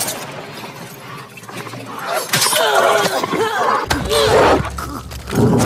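A man shouts and grunts while fighting.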